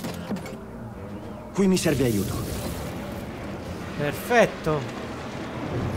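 A heavy metal door grinds and whirs as it slides open.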